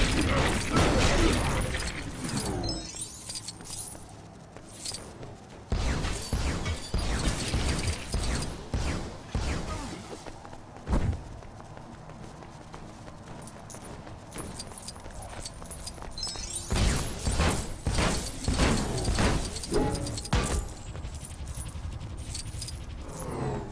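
Electricity crackles and zaps in bursts.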